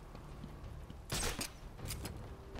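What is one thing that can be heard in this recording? A grappling line fires with a sharp whoosh.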